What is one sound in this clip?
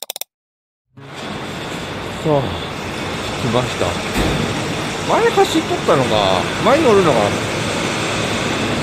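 A bus engine echoes in a tunnel.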